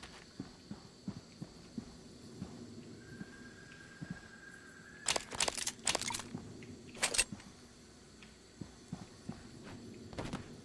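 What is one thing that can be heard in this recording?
A young man talks calmly into a microphone.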